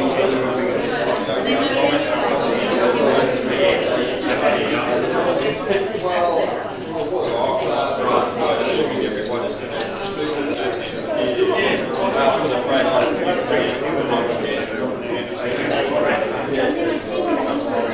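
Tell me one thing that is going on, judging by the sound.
Many men and women chatter at once in a large echoing hall.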